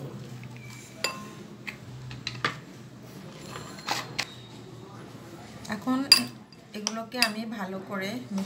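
A metal spoon clinks and scrapes against a glass bowl.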